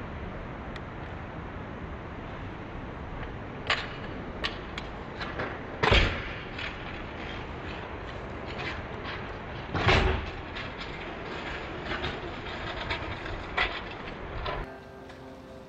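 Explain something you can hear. Skateboard wheels roll and rattle over rough concrete.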